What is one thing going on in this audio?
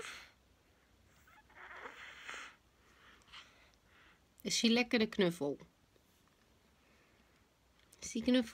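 A baby sucks and chews on a soft toy.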